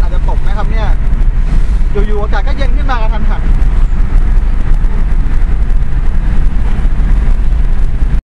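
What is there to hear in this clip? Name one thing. A car engine hums and tyres rumble steadily on the road from inside the car.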